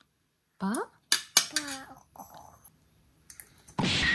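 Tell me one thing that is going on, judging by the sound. A metal fork clinks against a metal bowl.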